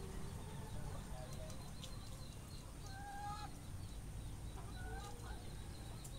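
Ducks quack nearby.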